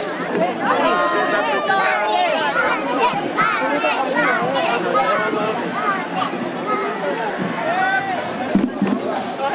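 Women talk among themselves nearby.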